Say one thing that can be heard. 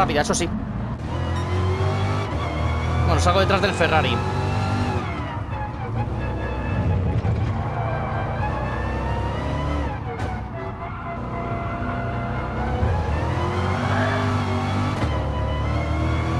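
A racing car engine revs and roars as the car accelerates.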